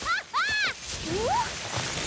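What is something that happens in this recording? A magical sparkle chimes and shimmers.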